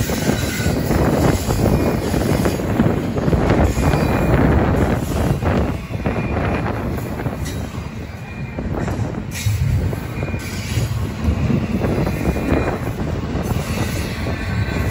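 Freight car wheels clatter and squeal on the rails.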